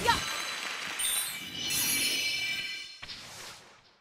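Magic sparkles chime and shimmer.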